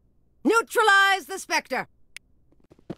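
A woman speaks coldly and clearly.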